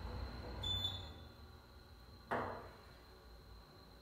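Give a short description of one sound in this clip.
Elevator doors slide open.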